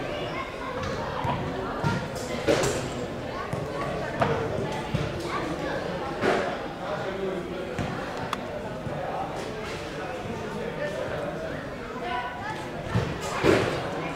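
Adults talk calmly nearby.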